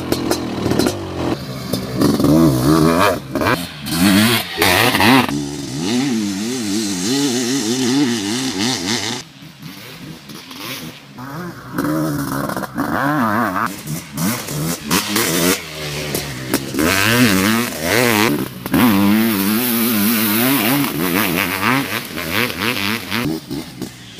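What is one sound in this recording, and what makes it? A dirt bike engine revs up and down as the bike rides over dirt.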